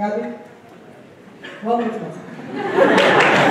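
A woman speaks over a loudspeaker in a large hall.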